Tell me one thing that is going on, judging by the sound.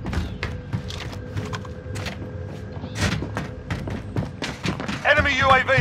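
Footsteps clatter on metal stairs.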